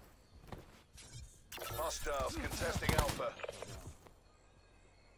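Gunshots crack out in short bursts.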